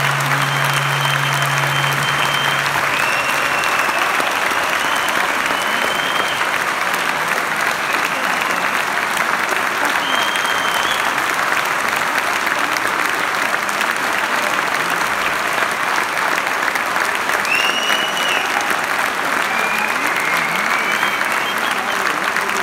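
Audience members whistle and cheer.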